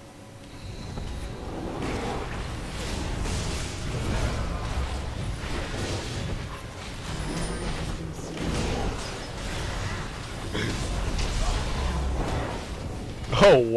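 Video game battle sounds clash and burst loudly.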